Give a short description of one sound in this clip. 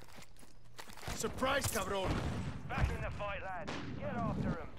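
Rapid gunfire crackles nearby.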